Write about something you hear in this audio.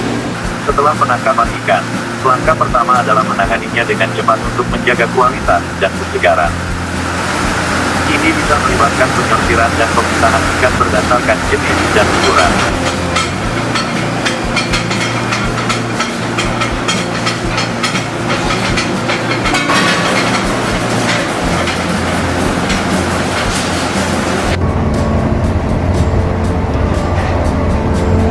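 Fish slap and clatter along a moving conveyor.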